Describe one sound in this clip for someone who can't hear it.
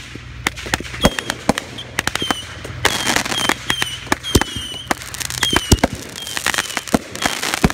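Firework rockets whistle as they rise.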